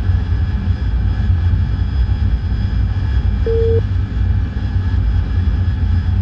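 A jet engine roars steadily from inside the cockpit.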